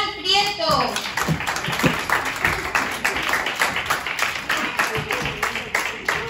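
A group of children clap their hands.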